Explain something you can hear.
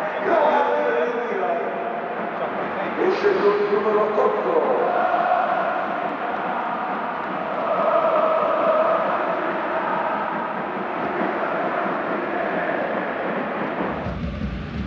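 A large stadium crowd chants and sings loudly.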